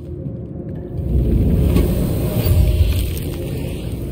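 A deep electric crackle bursts out.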